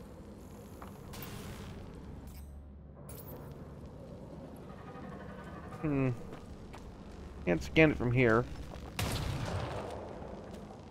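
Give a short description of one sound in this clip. Gunfire and an explosion burst from a game.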